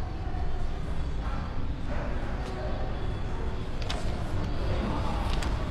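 Paper rustles in a woman's hands.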